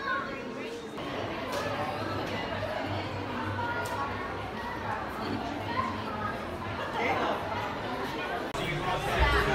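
People chatter in the background of an echoing hall.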